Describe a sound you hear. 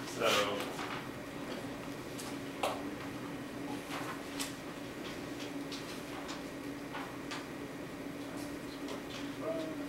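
Calculator buttons click softly.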